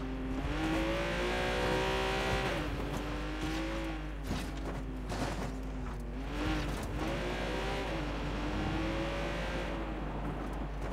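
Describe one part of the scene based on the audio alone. A car engine revs loudly, rising and falling in pitch.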